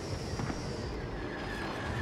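Laser guns fire in short bursts.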